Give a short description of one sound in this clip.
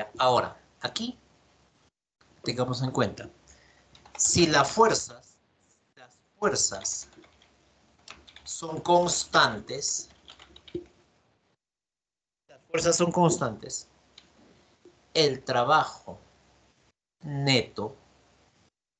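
A man speaks calmly over an online call, explaining in short phrases with pauses.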